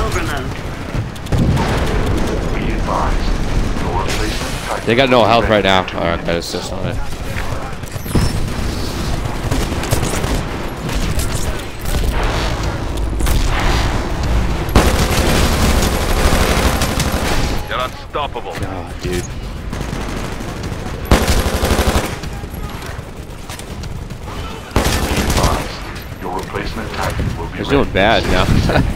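Gunfire from a rifle rattles in rapid bursts.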